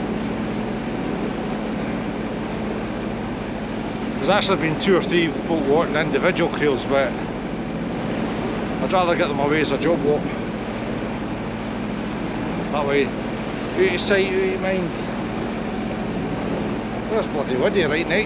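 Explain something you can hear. Wind and waves rush past outdoors.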